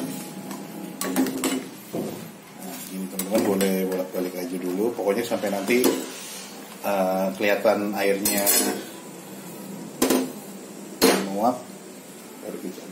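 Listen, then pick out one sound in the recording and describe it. A metal strainer clanks and scrapes against a steel pot.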